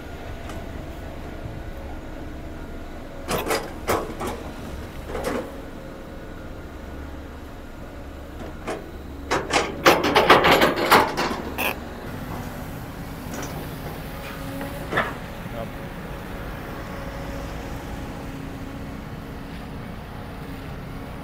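An excavator engine rumbles steadily.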